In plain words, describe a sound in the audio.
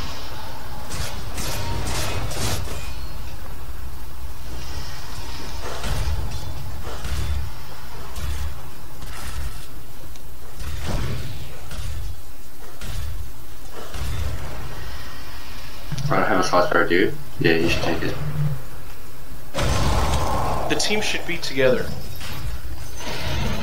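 Magic blasts crackle and whoosh.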